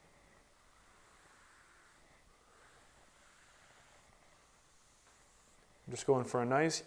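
A cloth rubs softly over a wooden surface.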